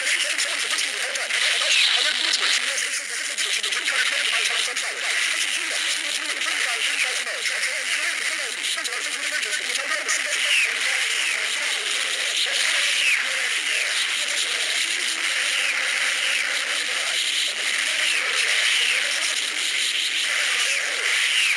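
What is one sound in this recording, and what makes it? An energy blast roars and crackles steadily.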